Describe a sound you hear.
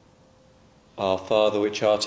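An elderly man intones aloud in a large echoing room.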